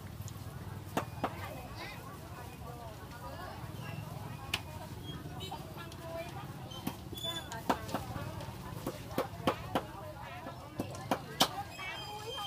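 A knife knocks sharply against a board in uneven chops.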